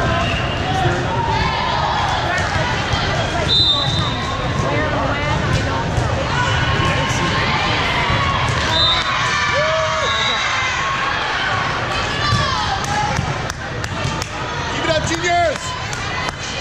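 A crowd of young women and girls chatter and call out in a large echoing hall.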